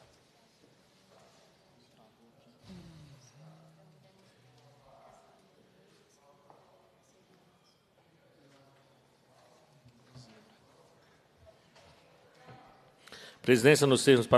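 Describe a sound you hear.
People murmur quietly in the background.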